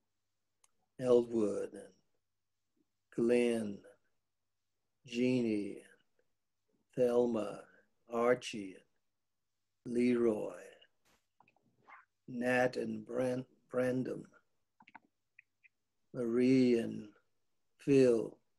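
A man speaks slowly in short phrases with pauses between them.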